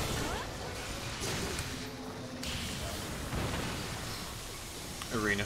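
A heavy blade strikes a creature with sharp slashing hits.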